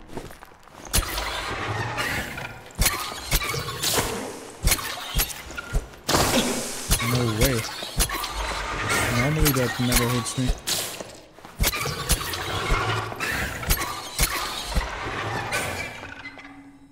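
A monstrous creature screeches and hisses loudly.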